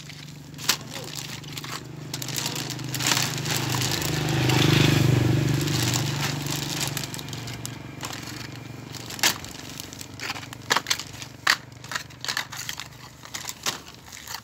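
Small plastic packages clatter and tap together.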